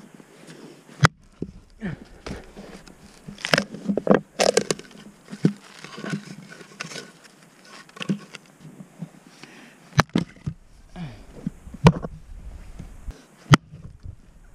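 An axe strikes wood with sharp, loud knocks.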